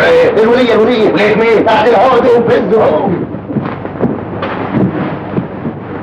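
Men scuffle and thump against each other.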